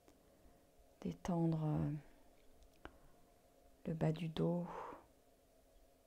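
A middle-aged woman speaks slowly and calmly into a close microphone.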